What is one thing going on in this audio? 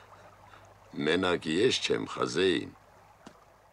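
A middle-aged man speaks in a low, gruff voice nearby.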